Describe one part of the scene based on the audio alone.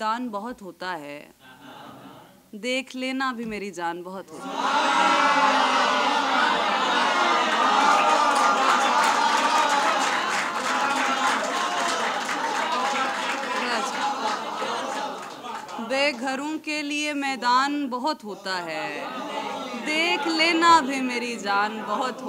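A young woman recites expressively into a microphone.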